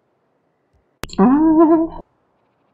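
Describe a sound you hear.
A man exclaims loudly through a microphone.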